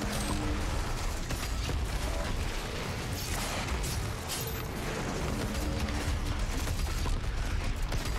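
Heavy gunfire booms in rapid bursts.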